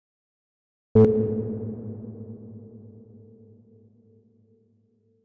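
A synthesizer note sounds once and slowly fades away.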